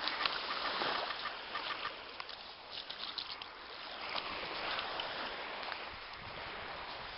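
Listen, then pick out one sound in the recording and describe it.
A dog's paws patter on wet sand.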